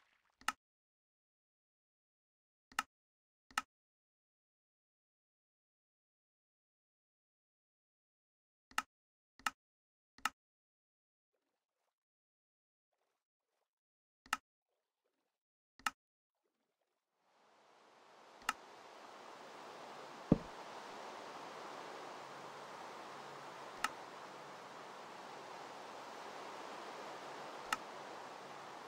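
Soft menu clicks tap now and then.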